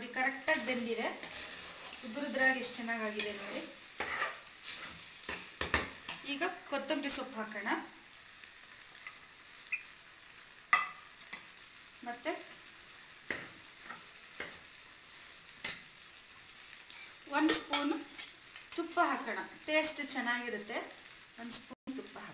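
A metal spoon scrapes and clinks against a metal pot while stirring food.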